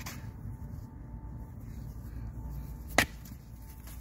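A rock thuds onto sandy ground.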